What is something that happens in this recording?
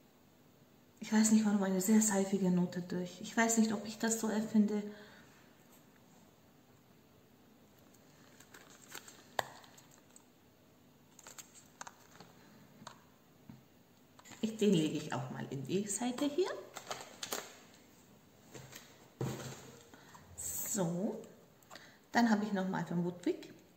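A woman talks calmly and close by, in bursts with pauses.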